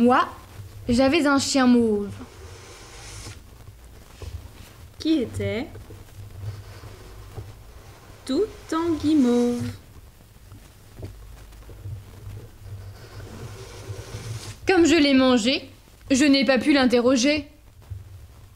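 A woman tells a story aloud close by, with lively, changing character voices.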